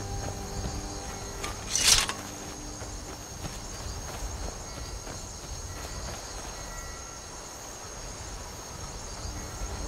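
Footsteps in armour crunch through grass.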